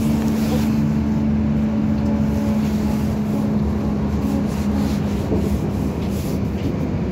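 A vehicle's motor hums steadily with a low rumble while riding along.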